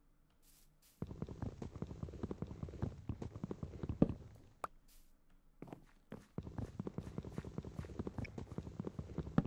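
Wood is chopped with rapid, dull knocks.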